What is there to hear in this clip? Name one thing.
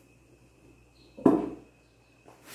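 A plastic cake stand thumps down onto a counter.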